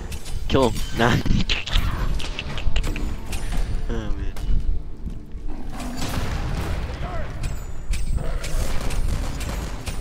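Magic spells and weapons clash and burst in a fast battle.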